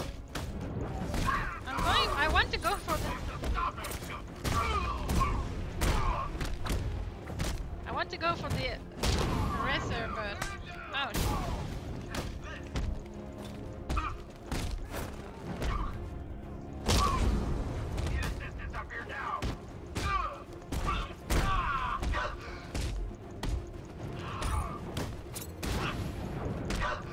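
Punches and kicks land with quick, heavy thuds.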